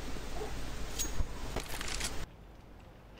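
A rifle rattles and clicks as it is handled.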